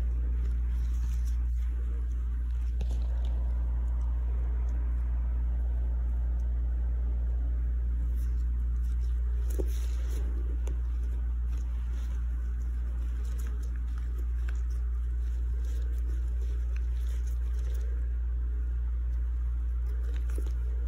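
Rubber gloves rustle softly against skin.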